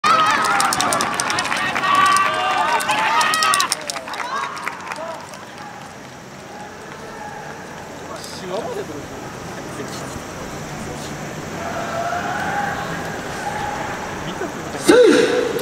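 A group of young dancers shouts loudly in unison outdoors.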